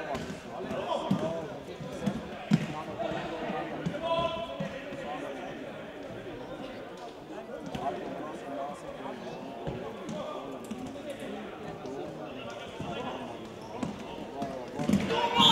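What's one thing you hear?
A ball is kicked with sharp thuds in a large echoing hall.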